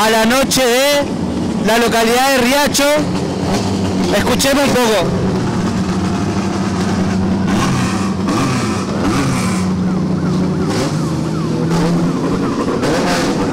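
A rally car engine idles and rumbles close by.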